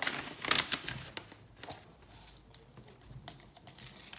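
Small bits of paper patter into an envelope.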